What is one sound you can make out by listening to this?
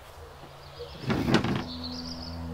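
A wooden gate scrapes and creaks open.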